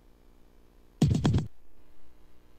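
A video game plays a short, loud burst of sound effect.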